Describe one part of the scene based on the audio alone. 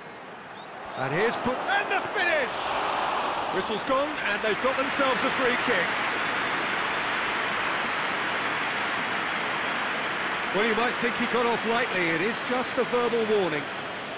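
A large stadium crowd cheers and roars, growing louder.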